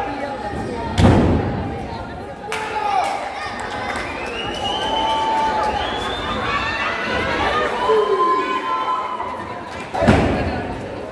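A body slams hard onto a wrestling ring mat with a loud thud.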